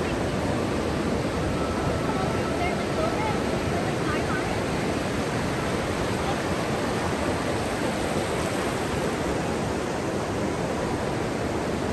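Wind blows across an open beach.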